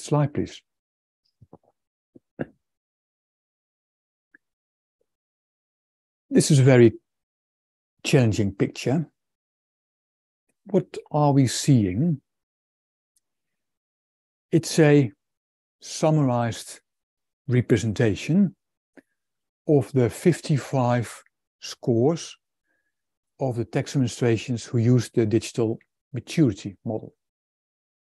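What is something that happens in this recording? A man speaks calmly and at length over an online call, with pauses between phrases.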